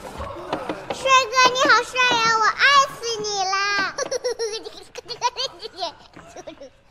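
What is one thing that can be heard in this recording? A young girl speaks in a high, sing-song voice, close by.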